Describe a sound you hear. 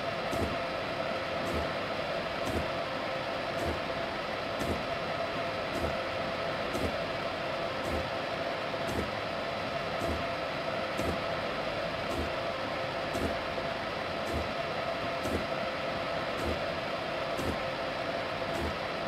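Train wheels click over rail joints in a steady rhythm.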